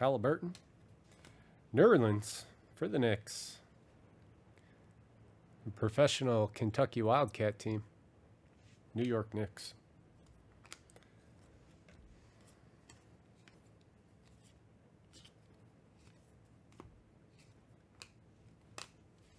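Trading cards click and rustle softly as hands shuffle through them.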